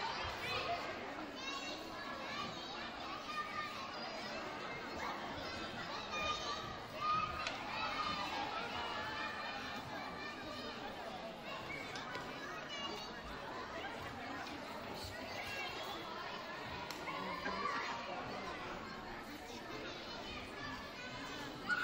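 A crowd of adults and children chatters throughout a large echoing hall.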